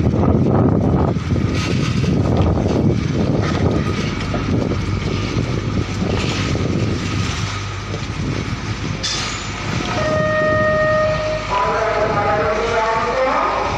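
Large tyres roll over rough pavement.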